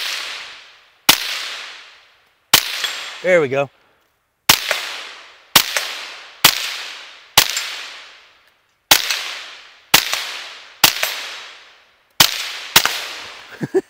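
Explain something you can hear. A rifle fires single loud shots that echo through the woods outdoors.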